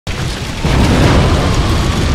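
A fireball bursts with a loud whoosh.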